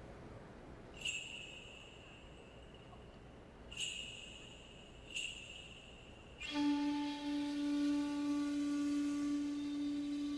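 Music plays loudly over arena loudspeakers.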